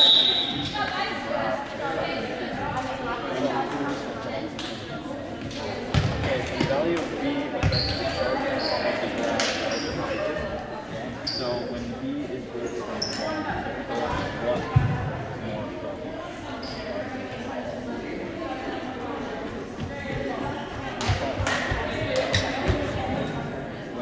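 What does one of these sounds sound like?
Many voices murmur and chatter throughout a large echoing gym.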